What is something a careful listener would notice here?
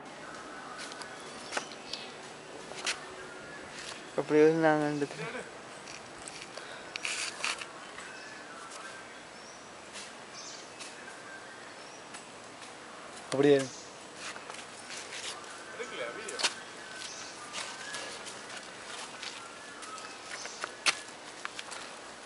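Footsteps scuff and tap on a rocky path.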